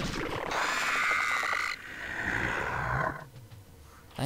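Creatures screech and clash in a noisy battle.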